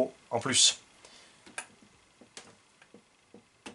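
Small plastic parts click and tap under handling.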